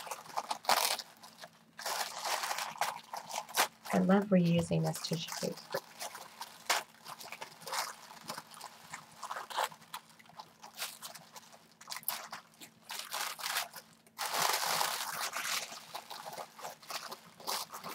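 Hands crinkle and rustle tissue paper.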